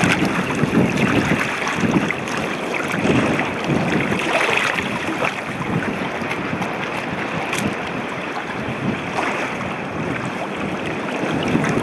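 Water ripples and trickles over rock.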